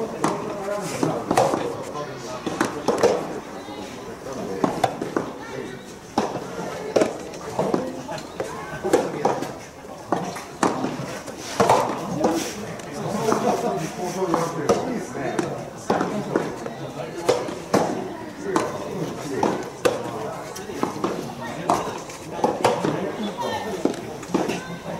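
Tennis rackets strike a ball back and forth in a steady rally.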